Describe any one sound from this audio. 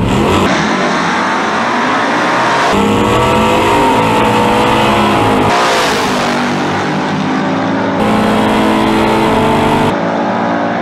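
Car engines roar loudly, revving and accelerating.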